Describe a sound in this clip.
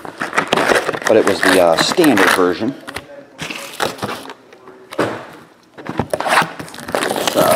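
A cardboard box is tapped and slid on a table.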